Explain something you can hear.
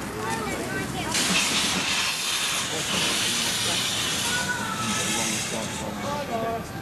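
A steam locomotive lets off a loud hiss of steam.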